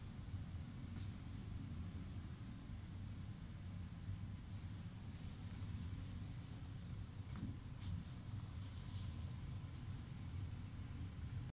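Plastic costume parts clatter softly as a person turns around.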